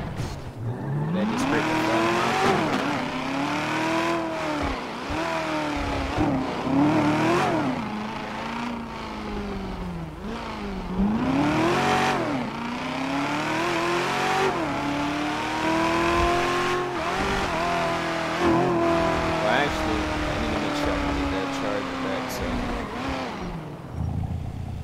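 A sports car engine revs up and down as the car accelerates and shifts gears.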